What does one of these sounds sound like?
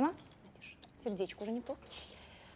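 An elderly woman speaks quietly close by.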